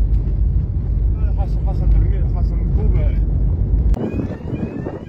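A car engine rumbles as the car drives over a rough road.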